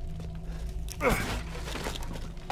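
A wooden crate smashes and splinters.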